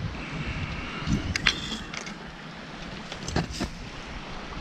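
Dry branches rustle and snap as someone pushes through brush.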